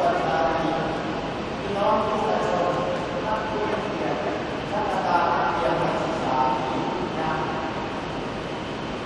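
A man speaks slowly and solemnly through a loudspeaker, echoing in a large hall.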